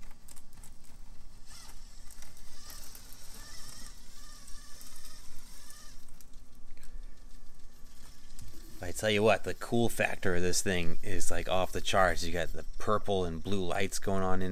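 A small electric motor whines as a toy truck crawls over rocks.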